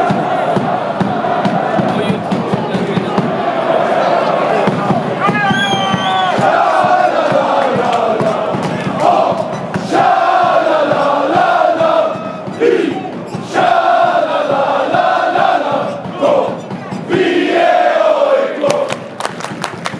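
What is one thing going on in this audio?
A large crowd chants loudly in unison across an open stadium.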